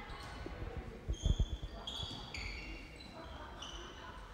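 Sneakers squeak sharply on a court in an echoing hall.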